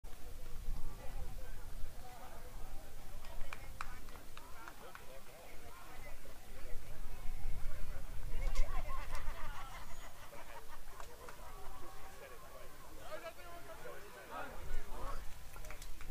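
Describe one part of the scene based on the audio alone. Two men talk calmly with each other outdoors, heard from a distance.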